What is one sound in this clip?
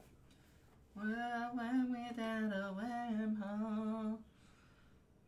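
A man hums a short tune close to a microphone.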